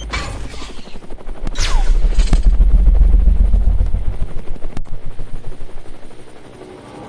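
A bullet whooshes through the air with a deep roar.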